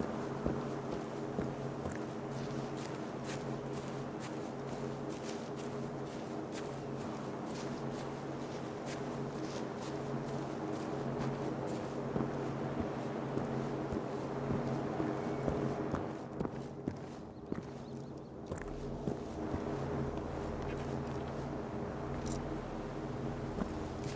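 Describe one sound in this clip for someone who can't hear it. Footsteps tread steadily over grass and stone.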